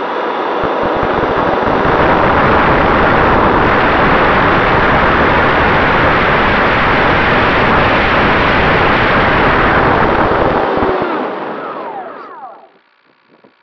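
Wind roars loudly past a jet aircraft in flight, then fades away.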